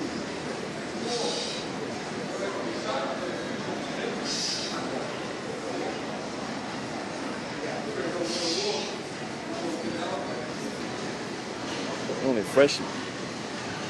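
Voices chatter and echo through a large hall.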